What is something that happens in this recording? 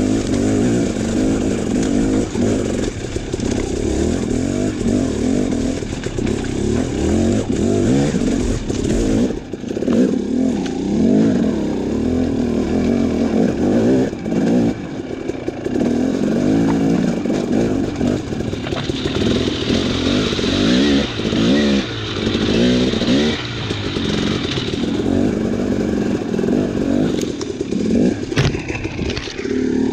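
A dirt bike engine revs and sputters up and down close by.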